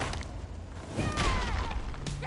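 A kick lands on a body with a dull thud.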